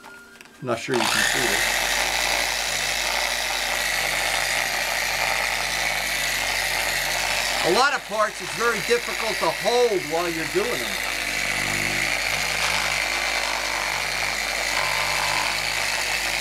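A power polisher whirs steadily against a surface.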